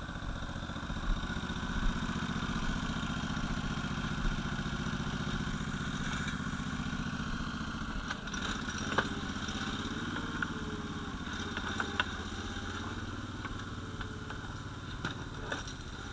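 A small tracked machine's engine runs with a steady chugging drone.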